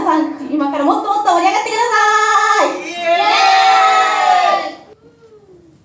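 Young women sing together into microphones, loud and close.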